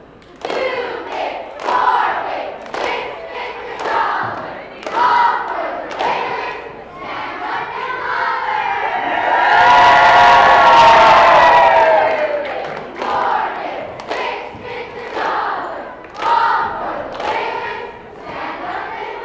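Young girls clap and stomp in a steady rhythm.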